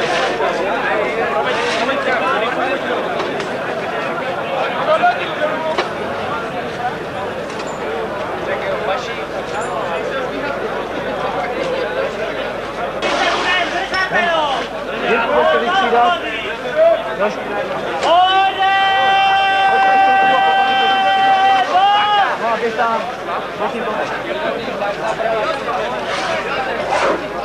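A large crowd of men and women talks and calls out loudly outdoors.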